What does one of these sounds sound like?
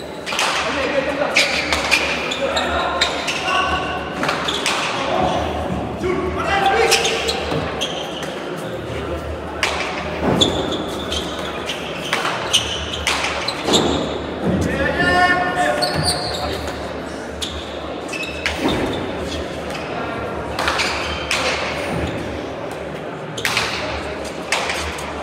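A hard ball smacks repeatedly against walls and gloves, echoing through a large hall.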